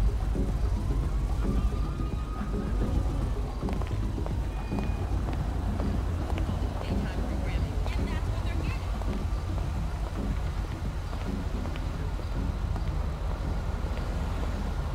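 Footsteps tap on pavement at a walking pace.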